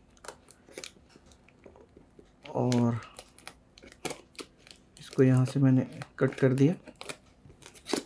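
Scissors snip and slice through packing tape on a cardboard box.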